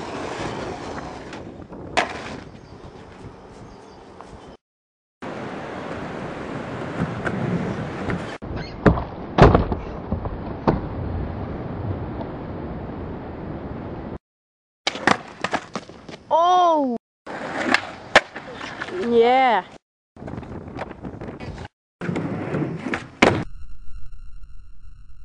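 Skateboard wheels roll over pavement.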